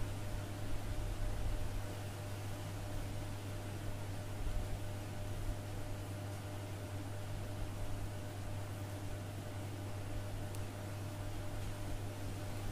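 Yarn rustles softly as it is pulled through fingers.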